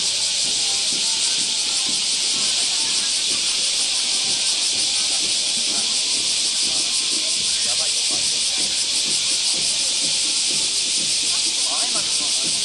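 A crowd of onlookers chatters softly nearby.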